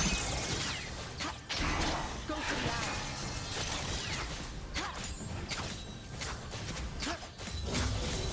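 Sharp blasts and hits ring out repeatedly.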